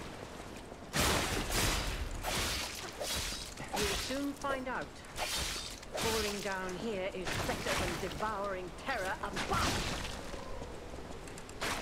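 Blades swing and strike in quick, heavy blows.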